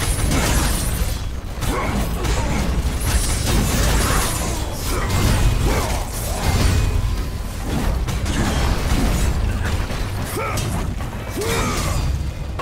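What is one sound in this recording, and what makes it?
Bones crunch and clatter as skeletons are smashed.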